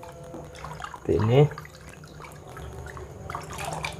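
A hand swishes and stirs water in a pot.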